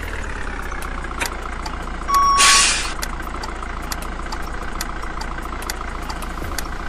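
A truck engine hums steadily as it drives.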